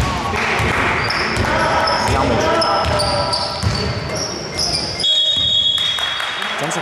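Sneakers squeak sharply on the court floor.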